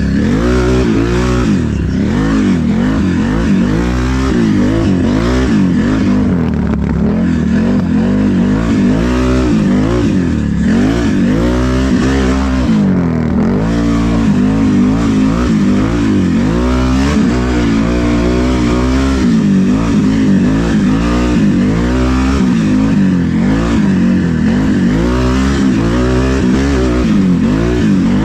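An off-road quad bike engine revs up and down close by, rising and falling in pitch.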